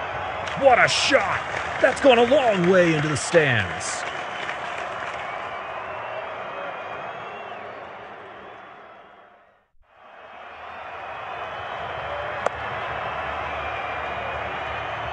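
A stadium crowd roars.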